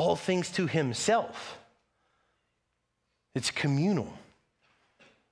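A man speaks calmly into a microphone in a large hall, with pauses between phrases.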